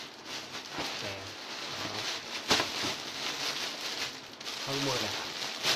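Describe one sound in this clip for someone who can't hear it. A young woman speaks briefly and softly nearby.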